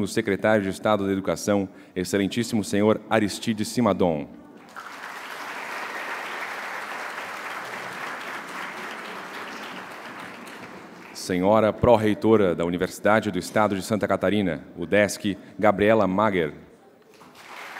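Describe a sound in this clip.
A young man speaks calmly into a microphone in a large hall.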